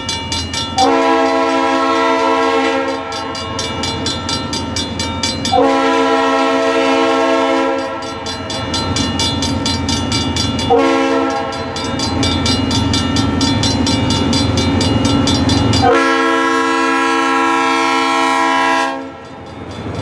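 A train horn blows loud, long blasts close by.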